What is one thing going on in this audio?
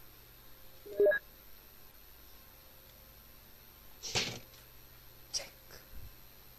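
A game's menu beeps as options are picked.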